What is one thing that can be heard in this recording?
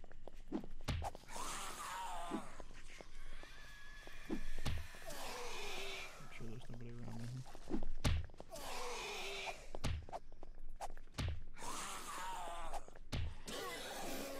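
A club thuds heavily against a body, again and again.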